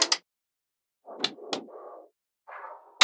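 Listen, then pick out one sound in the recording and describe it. A hand slides magnetic balls across a table with a soft rustle.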